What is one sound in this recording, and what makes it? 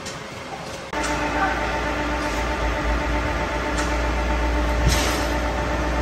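A vertical lathe's motor hums steadily.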